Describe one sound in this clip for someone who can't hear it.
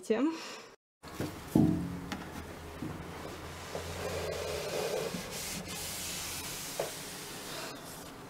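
A cloth wipes across a wooden shelf with a soft rubbing.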